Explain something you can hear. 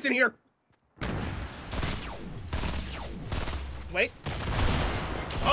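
Gunshots fire in quick bursts.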